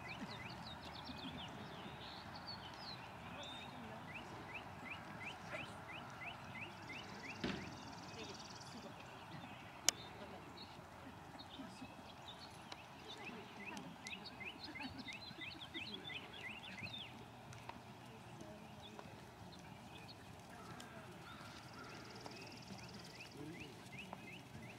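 Horse hooves thud softly on sand in a steady rhythm.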